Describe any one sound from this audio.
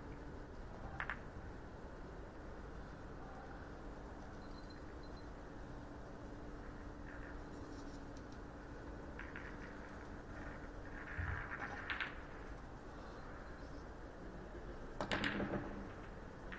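A cue sharply strikes a snooker ball.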